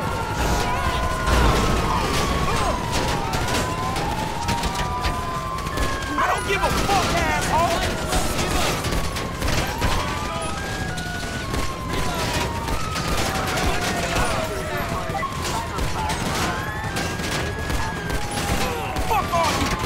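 Police sirens wail and overlap nearby.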